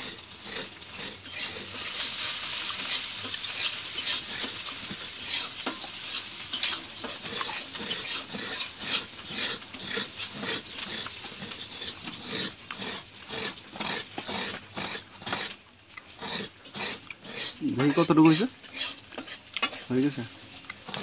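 A coconut is scraped against a metal grater blade with rapid rasping strokes.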